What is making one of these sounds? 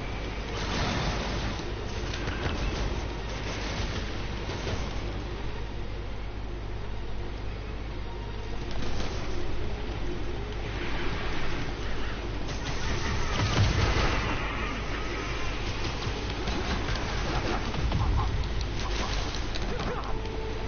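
Energy beams crackle and zap.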